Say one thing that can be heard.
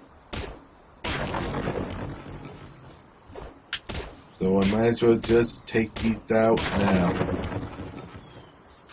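Wooden planks crash and clatter as a structure breaks apart.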